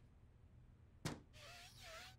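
A cat paws and taps at a window pane.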